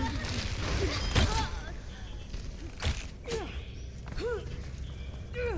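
A weapon fires with sharp blasts and whooshing zaps.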